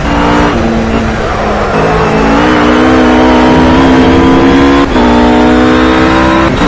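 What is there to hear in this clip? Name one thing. A GT3 race car engine revs hard at full throttle, rising in pitch.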